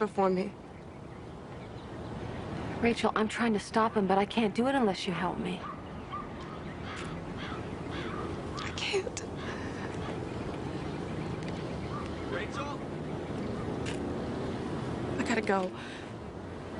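A young woman speaks tearfully and close by.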